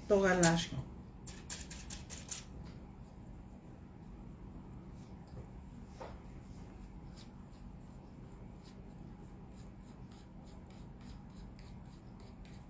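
A tool scrapes and taps lightly on a board.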